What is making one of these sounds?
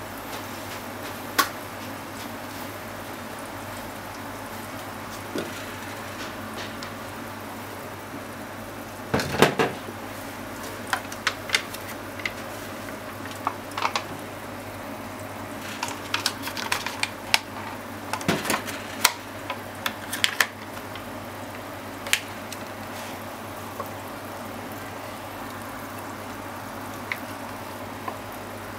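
Food sizzles and crackles in a covered pan.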